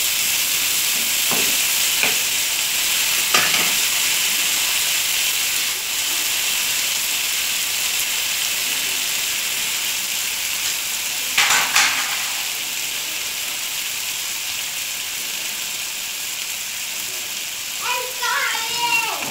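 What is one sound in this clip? Food sizzles and crackles steadily in a hot pan.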